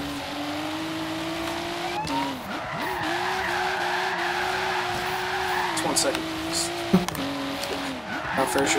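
A car engine hums steadily and shifts gears.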